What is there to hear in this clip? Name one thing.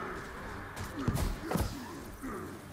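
A magical blast bursts with a loud boom.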